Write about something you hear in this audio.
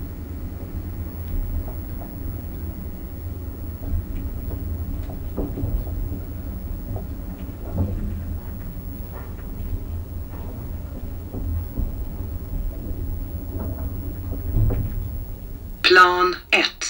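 An elevator hums low and steady as it moves.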